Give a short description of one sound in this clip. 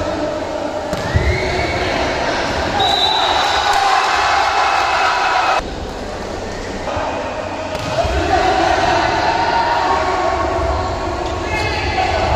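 A volleyball is struck with a hand.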